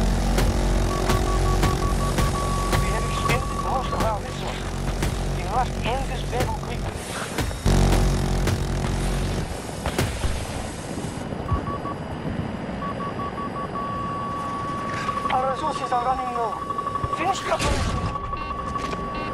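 A cockpit warning tone beeps rapidly and repeatedly.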